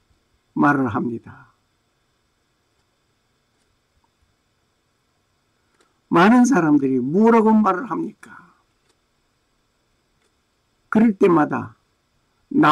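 An elderly man speaks calmly into a microphone in short phrases.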